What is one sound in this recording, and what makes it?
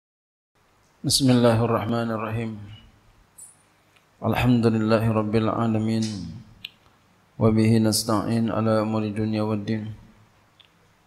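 A man speaks slowly and earnestly into a microphone, in short phrases with pauses.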